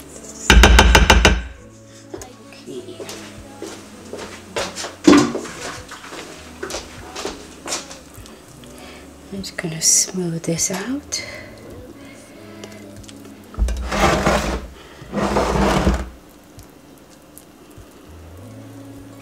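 A spatula scrapes and spreads thick batter in a glass dish.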